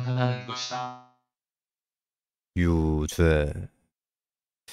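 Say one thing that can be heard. A young man speaks with animation into a microphone, close by.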